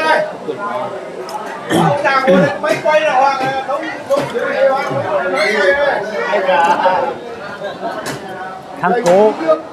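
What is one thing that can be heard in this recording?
Chopsticks click against bowls.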